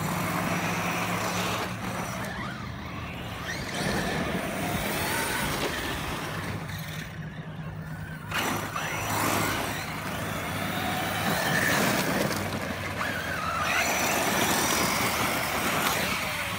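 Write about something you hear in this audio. Toy car tyres skid and spray gravel on dirt.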